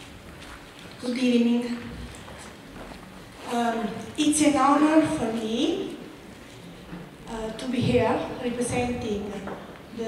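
A man speaks loudly into a microphone in a large echoing hall.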